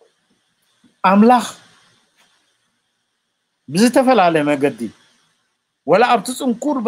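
An elderly man speaks calmly in bursts, heard through an online call.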